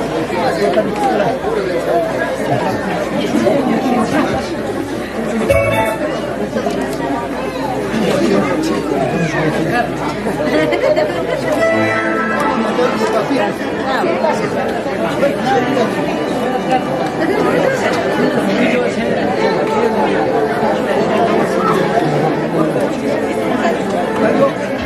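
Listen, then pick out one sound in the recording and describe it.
A crowd of men, women and children chatters all around.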